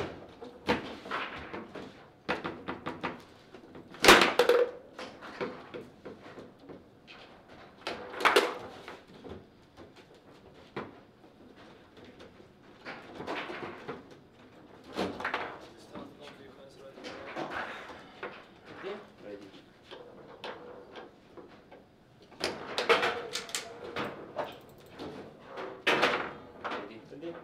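Foosball rods clack and the ball knocks sharply against the table.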